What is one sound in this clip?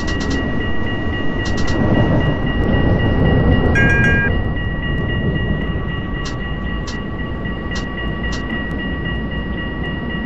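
A tram rolls along rails with a low, steady rumble.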